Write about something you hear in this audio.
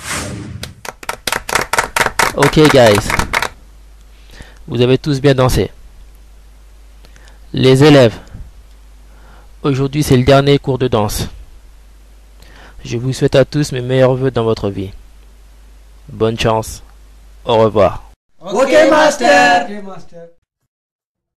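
Young men speak loudly in short bursts.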